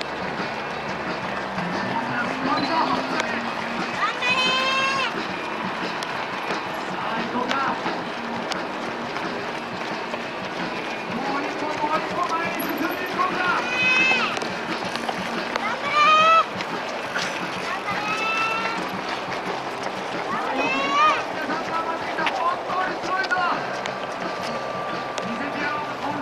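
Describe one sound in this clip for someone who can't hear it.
Many running feet patter on asphalt.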